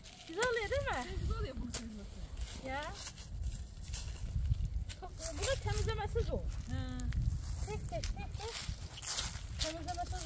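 Leaves and stems rustle as plants are picked by hand.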